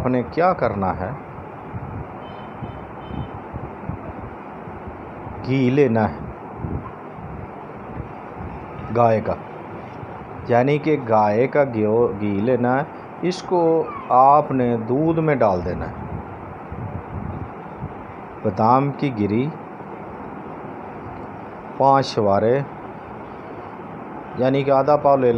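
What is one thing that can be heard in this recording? An elderly man speaks calmly and close to the microphone, with pauses.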